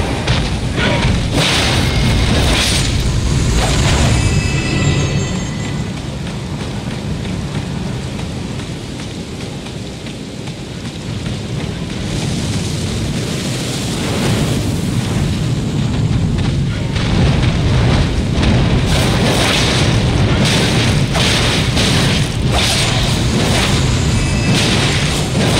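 Large wings beat with a deep rumbling rush.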